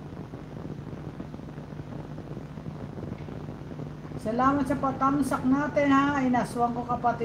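A fan hums steadily.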